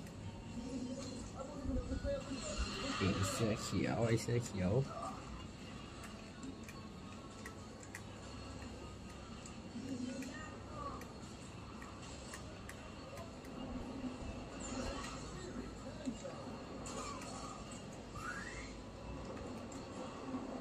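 Video game sounds play from a television speaker.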